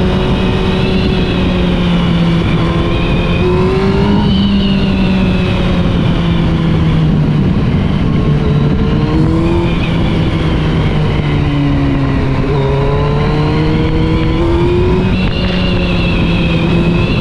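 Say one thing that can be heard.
A motorcycle engine hums steadily while riding, with pitch shifting as the throttle changes.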